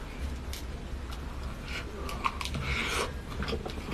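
A young woman chews and crunches food close to a microphone.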